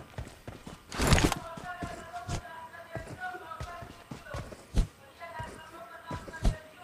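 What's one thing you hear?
Footsteps rustle through grass at a steady jogging pace.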